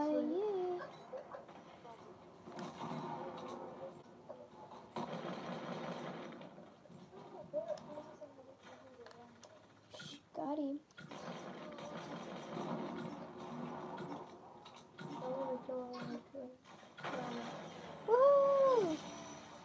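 Video game sound effects play from a television.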